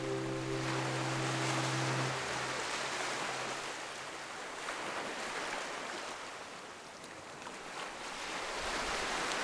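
Small waves wash gently onto a sandy shore and draw back.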